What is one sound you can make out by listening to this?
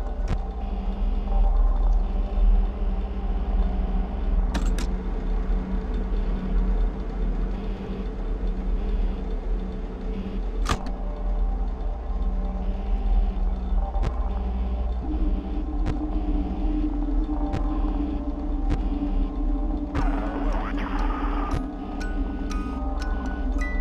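Short electronic clicks sound as monitor views switch.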